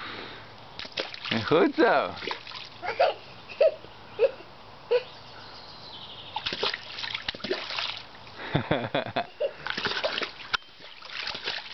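Water splashes as a toddler stomps in a small pool.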